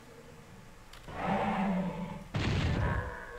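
A heavy metal door rumbles and grinds open.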